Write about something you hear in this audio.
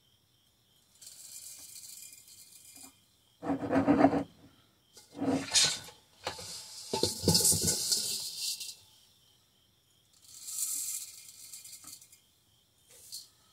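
Dry seeds rattle as they pour through a funnel into a glass jar.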